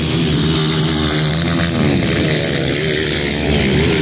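Several dirt bikes roar past close by.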